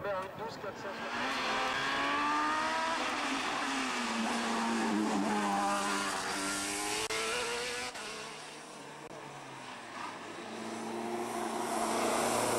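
A race car engine roars and revs as it passes close by.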